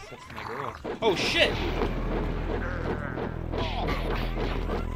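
Heavy punches land with dull thuds.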